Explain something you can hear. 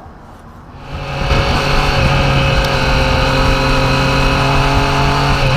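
A motorcycle engine roars steadily at speed.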